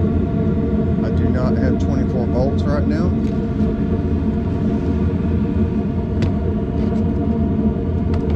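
An outdoor air conditioning unit hums steadily nearby.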